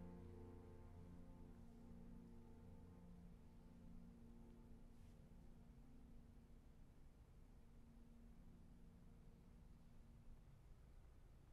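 A violin plays a soft held note that fades out.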